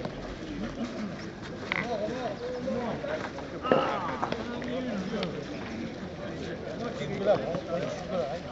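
A crowd of men and women talk and call out outdoors.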